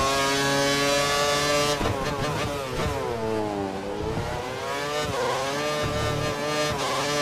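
A racing car engine screams at high revs, drops sharply as the gears shift down, then climbs again.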